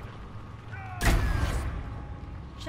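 A heavy blow lands with a loud, crackling burst.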